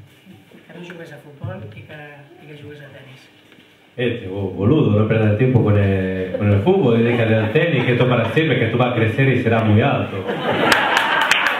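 A man speaks to an audience in a large echoing room.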